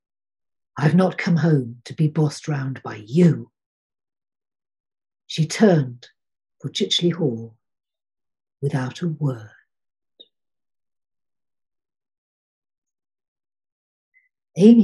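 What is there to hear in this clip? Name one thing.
An elderly woman reads aloud calmly over an online call.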